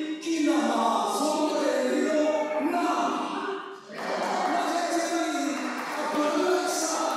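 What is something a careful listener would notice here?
A man speaks with animation through a microphone in a room that echoes slightly.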